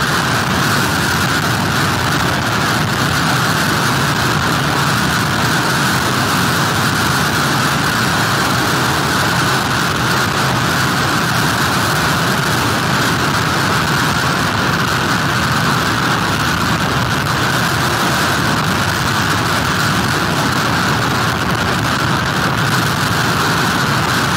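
Rain lashes down hard.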